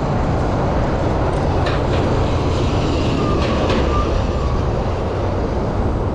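A city bus engine rumbles close by.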